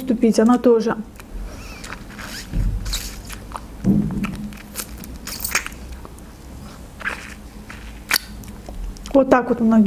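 A young woman chews and crunches fruit with wet, close mouth sounds.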